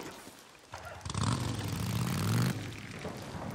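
A motorcycle engine starts and revs loudly.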